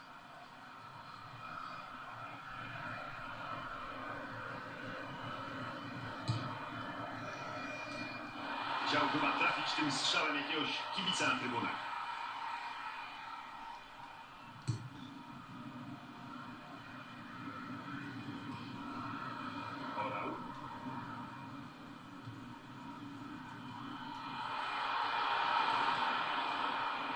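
A stadium crowd cheers through a television speaker, swelling loudly at times.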